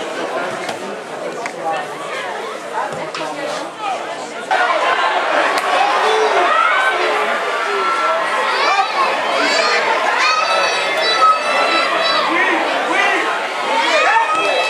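Players shout to each other outdoors across a football pitch.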